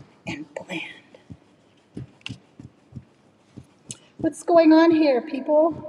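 Fingers softly rub pastel on paper.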